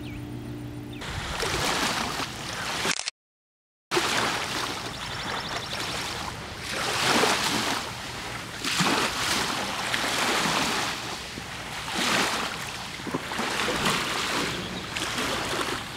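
Waves wash onto a shore in repeated rushing surges.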